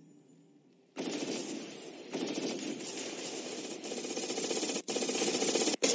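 Magic blasts burst and crackle in a game fight.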